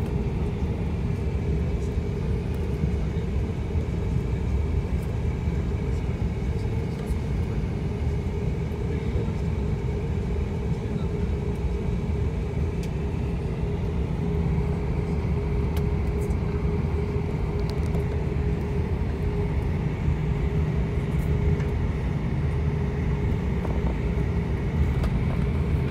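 Jet engines roar steadily as an airliner rolls along the runway.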